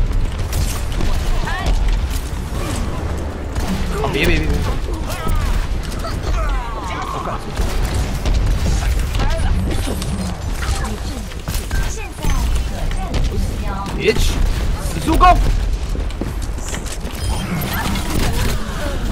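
Gunfire rattles rapidly in a video game.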